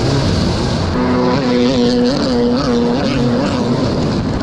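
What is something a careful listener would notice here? Another jet ski engine drones close by.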